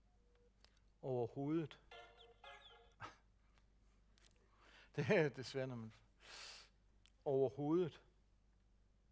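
A middle-aged man speaks calmly into a microphone, heard through a loudspeaker in a large hall.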